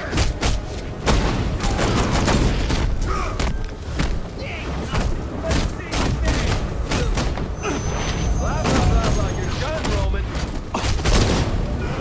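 Punches and kicks land with heavy thuds in a fast brawl.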